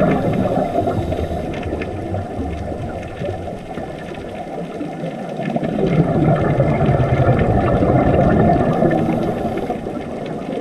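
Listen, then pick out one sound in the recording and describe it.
Scuba divers' breathing bubbles gurgle and rumble underwater.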